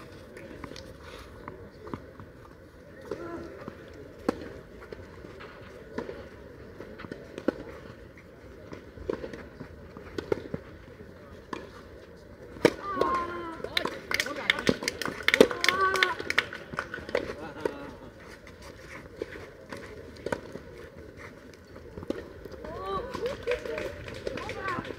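Tennis balls are struck with rackets in a steady rally.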